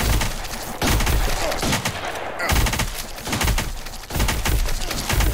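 Rapid electronic shots and blasts crackle without pause.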